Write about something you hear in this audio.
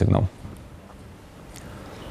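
A man speaks in a room.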